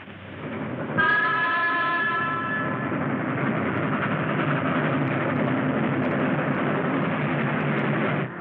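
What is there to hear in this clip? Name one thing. A train rumbles out of a tunnel.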